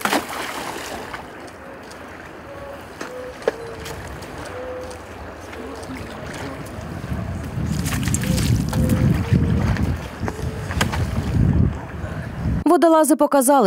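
Water sloshes and splashes as people wade through it.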